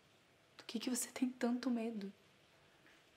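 A woman speaks up close in a raised, emotional voice.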